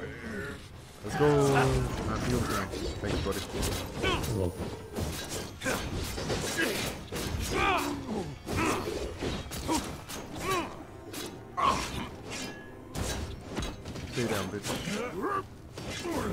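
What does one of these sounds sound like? Blades slash and strike in quick, repeated hits.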